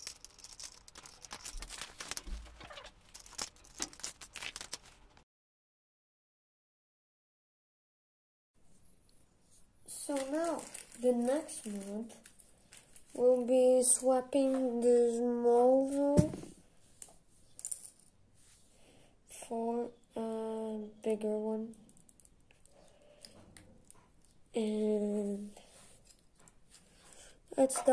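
Small plastic toy pieces click and tap together as they are fitted by hand.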